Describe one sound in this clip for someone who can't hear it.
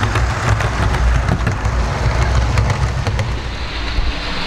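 A small model train rumbles past close by.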